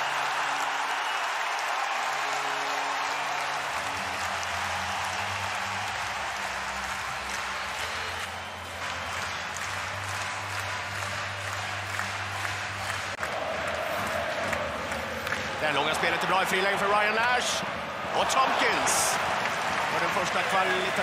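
A large crowd roars and cheers throughout an echoing arena.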